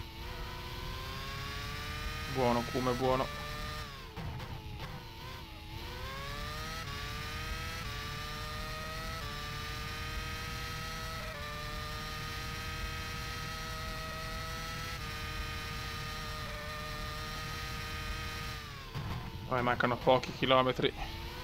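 A racing car engine whines at high revs, rising in pitch through the gears.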